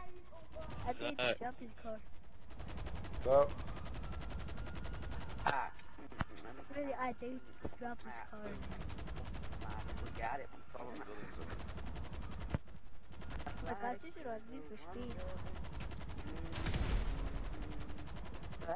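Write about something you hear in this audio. A helicopter's rotor hums steadily.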